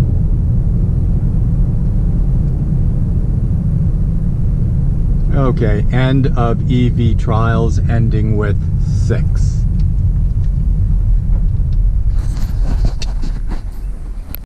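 A car drives along a road with a steady low rumble of the engine and tyres.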